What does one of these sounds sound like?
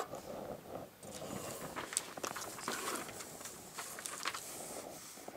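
Paper rustles and crinkles as it is folded and handled.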